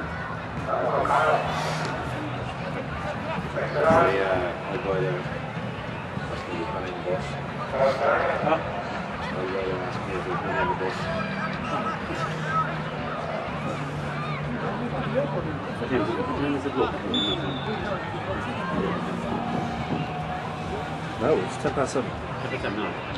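Men and women nearby talk and call out excitedly.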